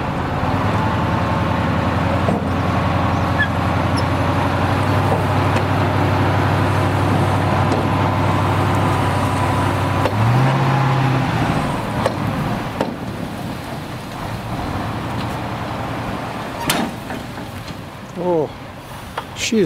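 A truck engine rumbles steadily, then revs briefly.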